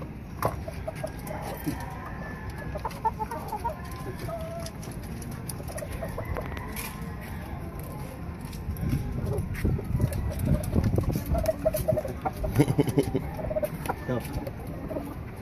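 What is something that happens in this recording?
Chickens cluck softly nearby.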